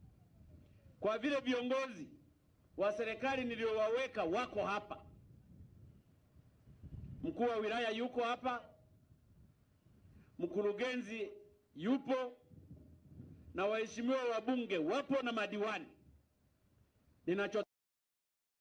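A man speaks forcefully in bursts through a microphone and loudspeakers outdoors.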